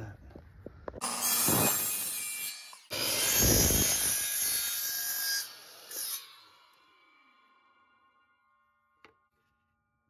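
A power miter saw whines and cuts through wood, then winds down.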